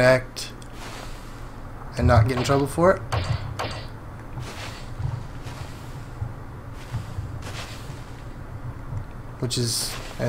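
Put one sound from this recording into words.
A young man speaks casually, close to a microphone.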